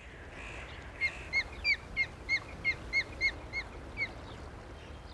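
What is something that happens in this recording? A bird of prey calls with a quick series of sharp, high whistling chirps.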